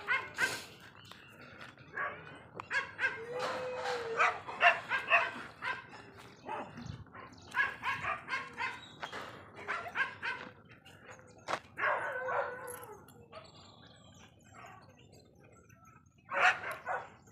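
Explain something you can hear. A dog sniffs at the ground.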